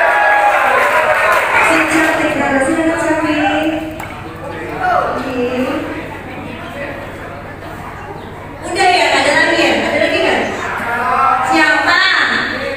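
A crowd of young people shouts and screams excitedly close by.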